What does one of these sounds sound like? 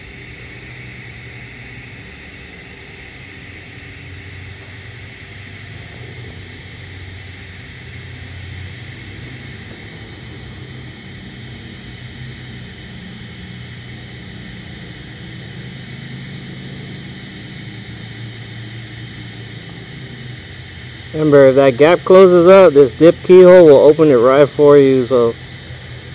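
A welding torch hisses and buzzes steadily.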